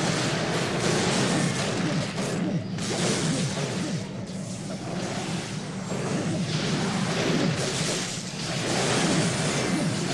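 Game combat sounds clash and crackle with spell effects.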